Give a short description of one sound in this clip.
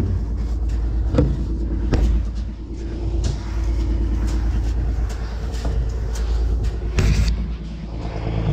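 Seed grains rustle and hiss as a gloved hand stirs them.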